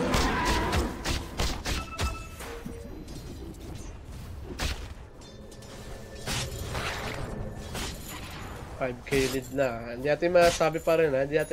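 Spell blasts and weapon clashes burst out in quick succession.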